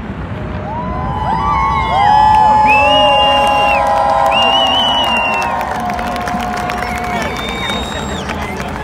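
A large crowd cheers outdoors.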